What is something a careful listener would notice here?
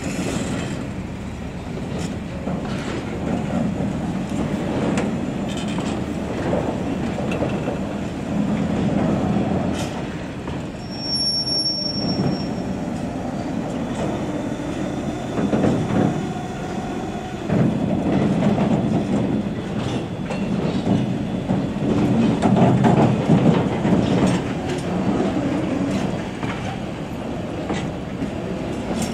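Train wheels clatter and squeal over the rails.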